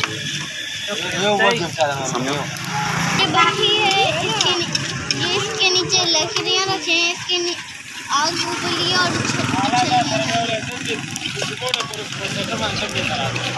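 A young child talks excitedly close by.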